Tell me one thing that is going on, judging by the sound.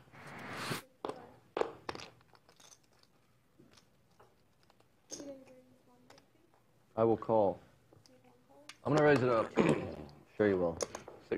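Poker chips click and clatter together.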